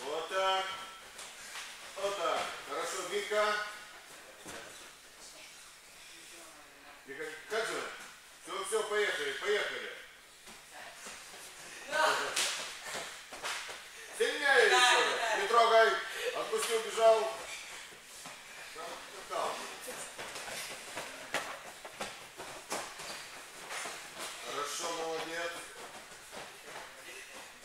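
Bare feet thud and shuffle on a padded mat.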